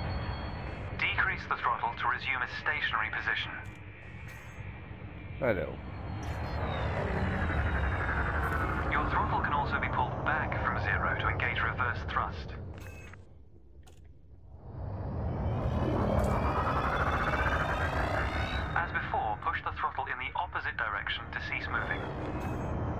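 A spaceship engine hums and whines, fading almost to silence and then swelling again.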